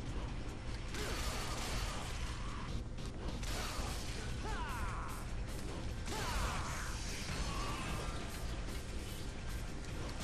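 A sword slashes and strikes repeatedly with sharp metallic hits.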